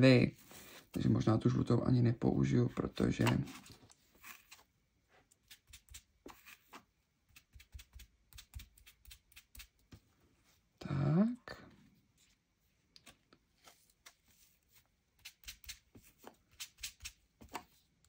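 A foam sponge dabs and taps softly on paper.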